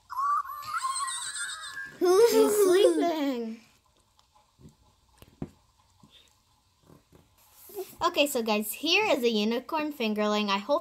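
A small electronic toy chirps and chatters in a high, squeaky voice.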